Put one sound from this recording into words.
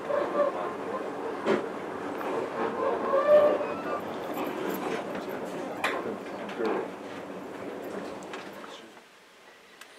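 A train rumbles and clatters past on nearby tracks.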